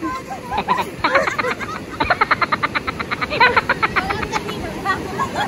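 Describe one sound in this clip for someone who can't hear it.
A woman laughs loudly in rapid bursts.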